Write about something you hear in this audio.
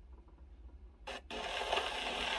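A stylus lands on a record with a soft scrape.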